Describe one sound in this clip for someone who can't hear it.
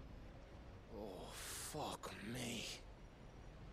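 A man mutters a curse.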